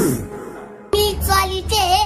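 A young woman speaks quickly and forcefully, close up.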